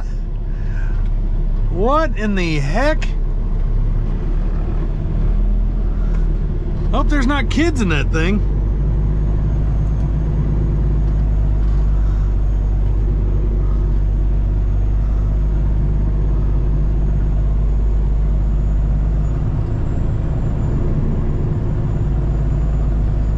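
A heavy truck engine rumbles steadily from inside the cab.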